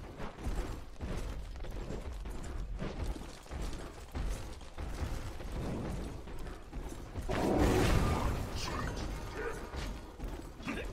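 Heavy footsteps thud across ice.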